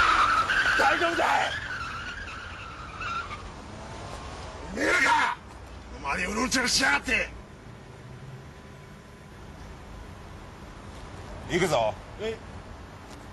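A man speaks tensely at close range.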